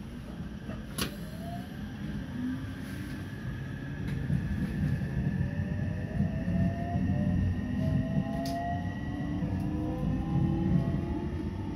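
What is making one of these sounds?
A train pulls away and picks up speed, its motor whining higher and higher.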